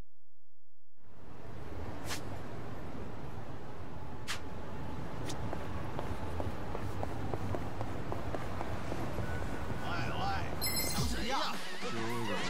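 A busy city street hums with crowd noise.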